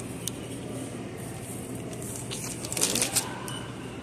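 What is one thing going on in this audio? A pasta package drops into a shopping cart.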